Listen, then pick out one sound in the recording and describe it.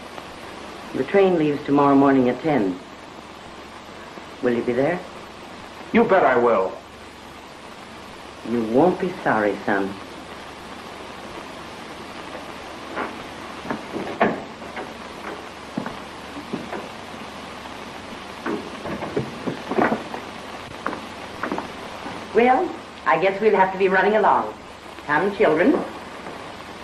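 An older woman speaks with animation.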